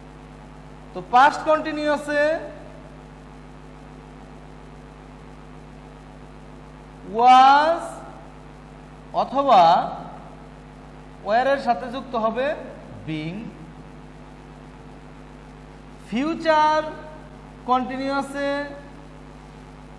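A man speaks in short, calm phrases close by.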